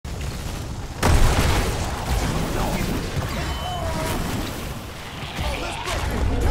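Game spell effects burst and crackle in a battle.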